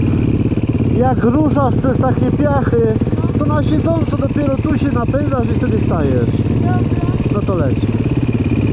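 A child talks loudly over the engine.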